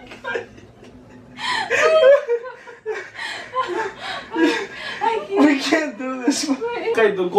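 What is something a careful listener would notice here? A young man talks and laughs nearby.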